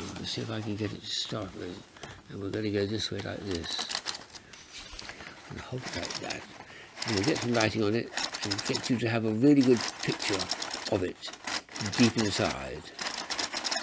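An elderly man talks calmly and explains, close by.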